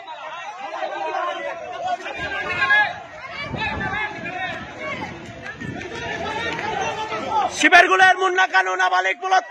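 A crowd of men shouts and clamours outdoors.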